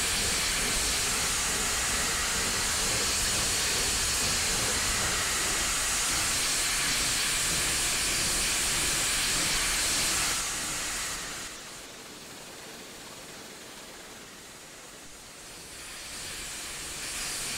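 A steam locomotive hisses steam as it chugs slowly along.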